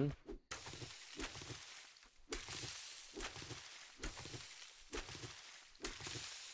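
Footsteps tread steadily through grass and soil.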